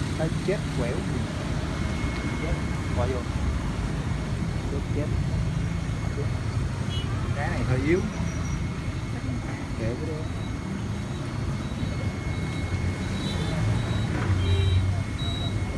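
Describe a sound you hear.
Aquarium water bubbles steadily.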